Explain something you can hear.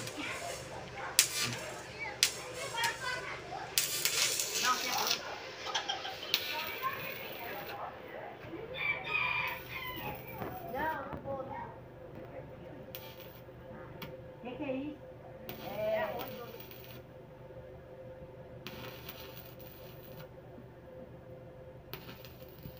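An arc welder crackles and sizzles in short bursts.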